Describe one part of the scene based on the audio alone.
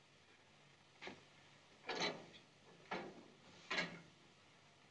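A metal stove door clanks and rattles.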